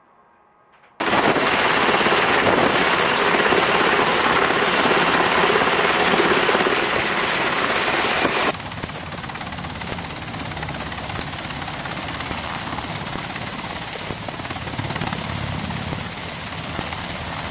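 Helicopter rotors thump and roar loudly close by.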